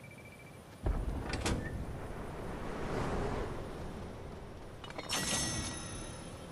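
A metal door swings open.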